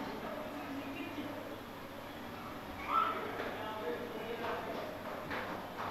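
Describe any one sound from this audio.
A marker squeaks on a board.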